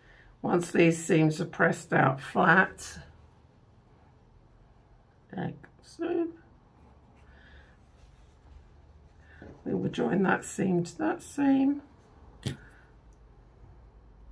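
Soft fabric rustles as it is handled.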